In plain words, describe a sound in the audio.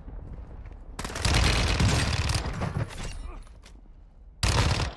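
Rapid gunfire rings out from a video game.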